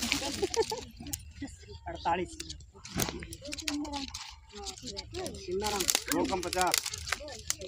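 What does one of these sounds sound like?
Men talk nearby in a group, outdoors.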